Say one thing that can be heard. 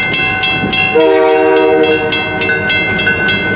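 A locomotive horn blares loudly.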